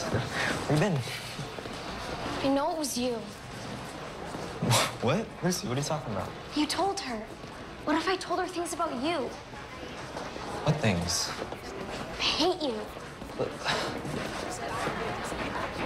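A teenage boy talks quietly, close by.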